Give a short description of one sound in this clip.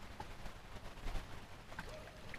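A net splashes into shallow water.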